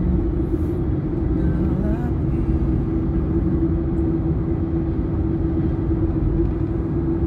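Tyres roll on the road with a steady low rumble.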